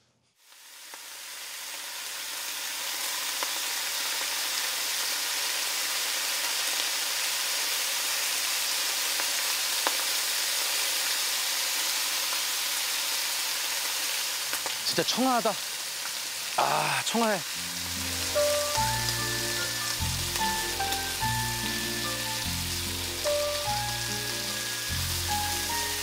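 Meat sizzles loudly on a hot grill.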